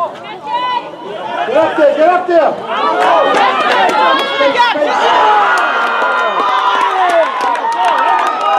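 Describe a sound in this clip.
Men and women on the sidelines shout and cheer with excitement nearby, outdoors.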